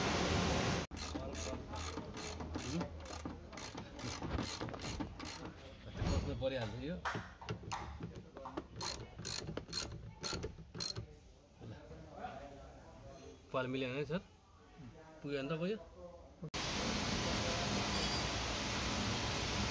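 A ratchet screwdriver clicks rapidly as a screw is turned.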